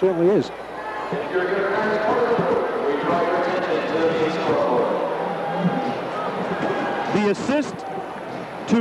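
A large crowd cheers and chatters in a big echoing arena.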